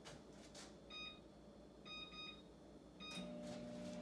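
A microwave beeps as its buttons are pressed.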